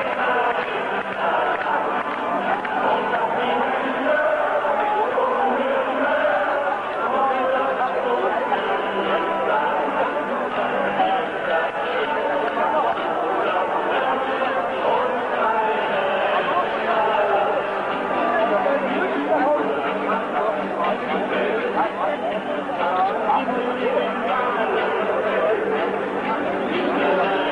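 A large stadium crowd chants and roars loudly outdoors.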